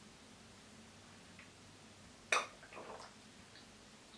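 A young woman sips through a straw from a juice box.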